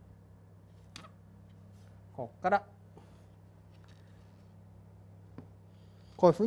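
A compass scrapes and taps on a chalkboard.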